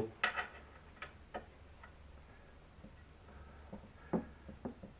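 Small plastic parts click and tap against a hard plastic cover.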